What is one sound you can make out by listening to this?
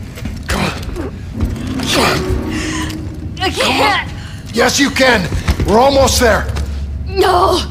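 A young woman speaks in a strained, faltering voice nearby.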